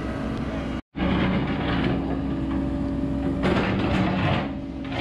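An excavator bucket scrapes and crunches into dirt and gravel.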